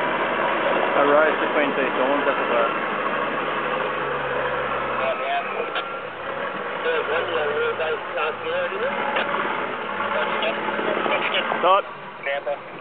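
An engine revs hard and strains.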